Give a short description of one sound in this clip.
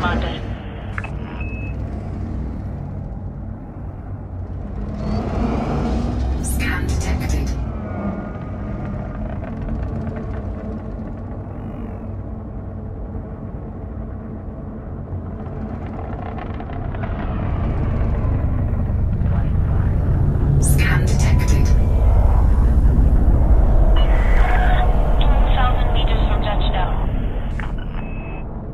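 A spaceship's engines rumble low and steadily, swelling louder toward the end.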